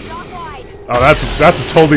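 An energy weapon fires with loud, buzzing blasts.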